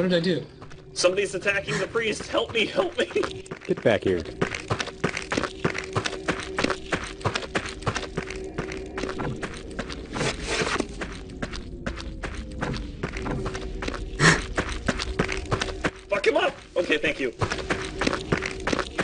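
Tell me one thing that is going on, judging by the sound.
Footsteps patter quickly and steadily on hard ground.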